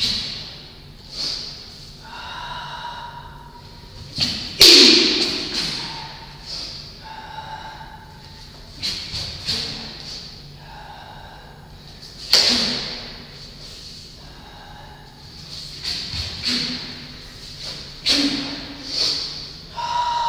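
Bare feet thump and slide on a wooden floor.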